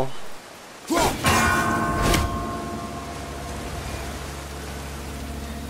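A stream of water rushes and splashes steadily.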